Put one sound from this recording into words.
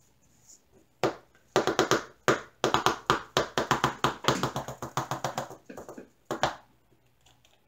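Small plastic beads rattle and clatter in a jar.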